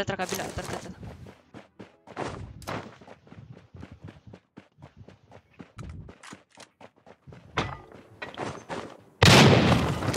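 Footsteps patter quickly over grass and ground.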